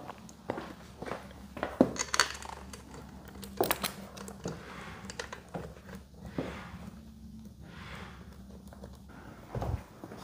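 Small metal parts click and tap as they are fitted by hand.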